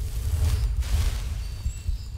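A magic spell bursts with a bright whoosh.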